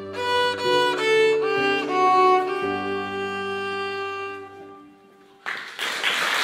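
A piano plays along with a violin.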